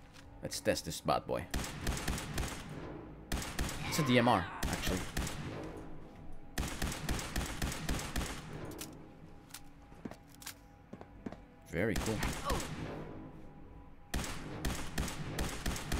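Laser rifle shots fire in quick bursts.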